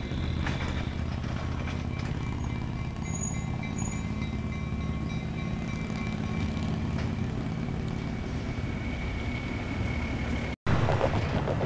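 A railway coach rolls slowly along the track with a low rumble.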